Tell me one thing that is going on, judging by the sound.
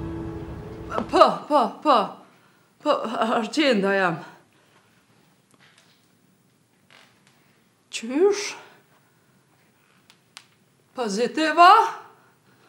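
A young woman talks on a phone in short bursts, close by.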